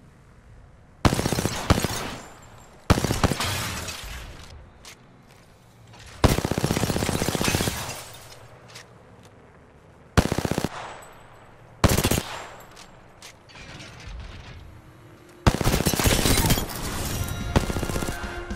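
Bursts of rapid automatic gunfire ring out.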